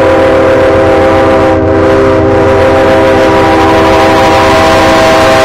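A train horn blares loudly and steadily nearby.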